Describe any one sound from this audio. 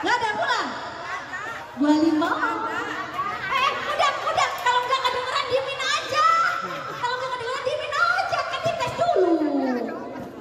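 A crowd of women chatters and calls out nearby, outdoors.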